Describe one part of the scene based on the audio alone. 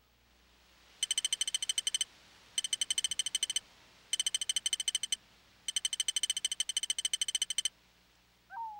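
Game score tallying makes rapid ticking chimes in bursts.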